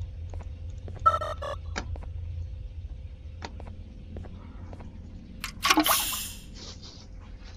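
A small electronic detector beeps in short bursts.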